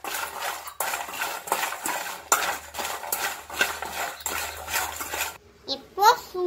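Cashew nuts rattle as they are tossed in a steel bowl.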